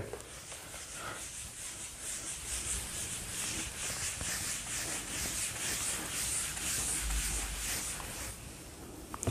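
A whiteboard eraser rubs steadily across a board.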